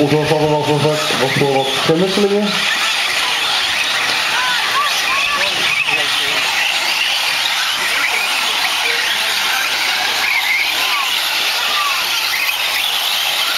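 Electric motors of small model cars whine and buzz.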